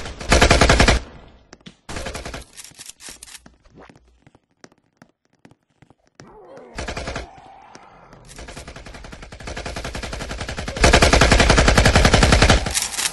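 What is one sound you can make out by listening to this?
An automatic rifle fires rapid bursts of shots.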